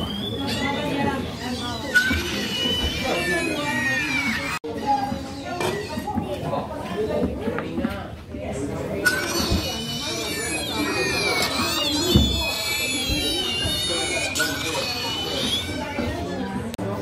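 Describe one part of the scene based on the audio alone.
A puppet creature lets out shrill, wailing screeches.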